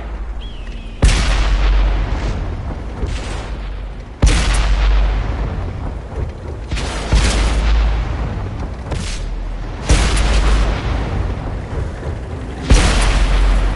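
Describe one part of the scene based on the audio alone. Tank guns fire with loud booming blasts.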